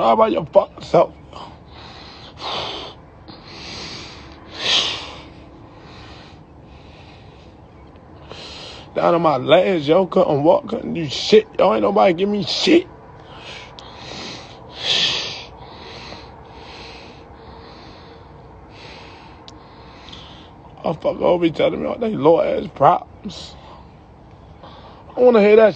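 A young man talks with animation close to a phone microphone, in bursts with pauses.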